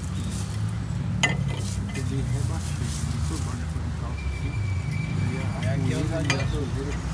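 A diesel engine idles with a steady low rumble close by.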